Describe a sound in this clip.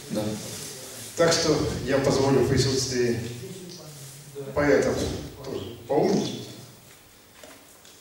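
An older man speaks calmly through a microphone in an echoing hall.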